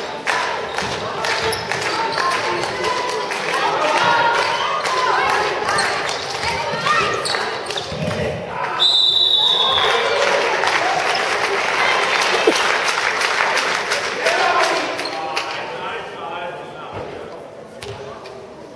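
Young women shout to each other across an echoing hall.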